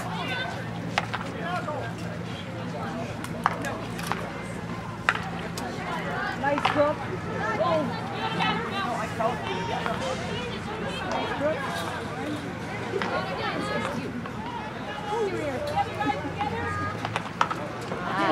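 Hockey sticks crack sharply against a ball.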